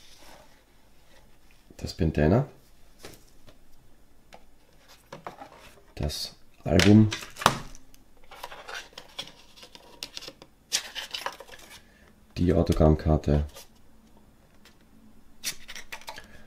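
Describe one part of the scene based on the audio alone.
Fabric and cardboard rustle as things are lifted out of a box.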